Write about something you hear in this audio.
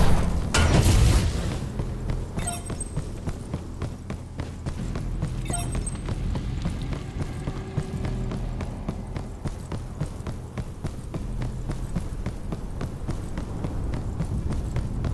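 Heavy footsteps thud quickly and evenly on the ground.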